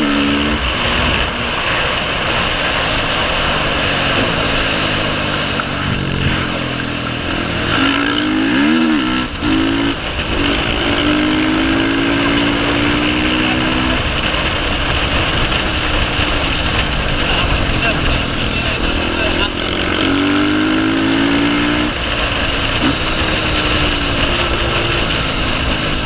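A motorcycle engine roars up close, its pitch rising and falling as it revs.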